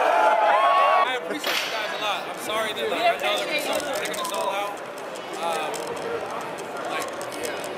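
A crowd of young men and women chatters at close range.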